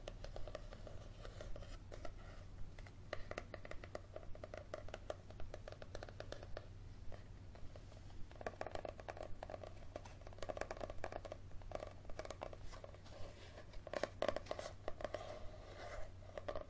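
A young woman whispers softly close to the microphone.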